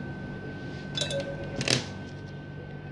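Plastic tubes click and rattle.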